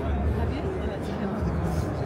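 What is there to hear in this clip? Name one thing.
A woman speaks cheerfully nearby.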